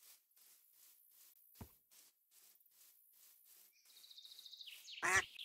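Footsteps pad quickly across grass.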